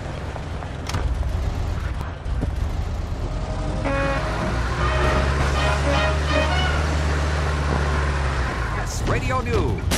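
A car engine starts and rumbles steadily.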